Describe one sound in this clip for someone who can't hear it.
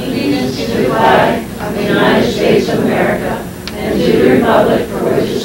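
A group of men and women sing together nearby.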